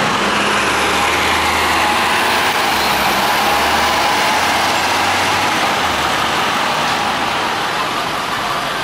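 Street traffic hums steadily.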